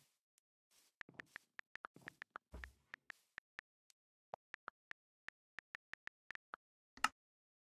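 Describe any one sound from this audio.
Keyboard clicks tick in quick, irregular taps.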